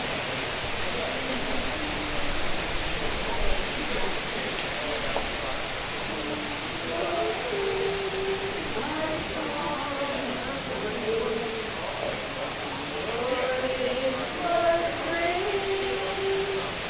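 A group of adults sing slowly together outdoors.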